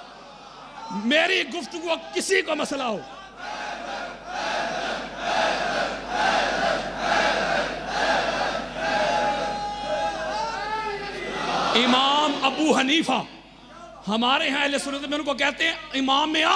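A middle-aged man preaches passionately through a microphone, at times shouting and chanting.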